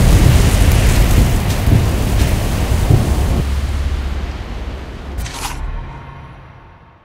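An electric portal crackles and rumbles loudly, then fades away.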